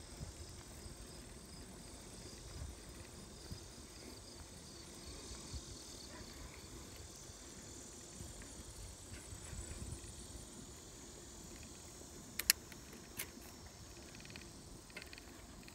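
Wind rumbles softly outdoors.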